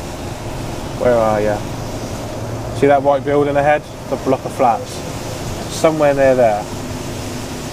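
A young man talks calmly into a nearby microphone.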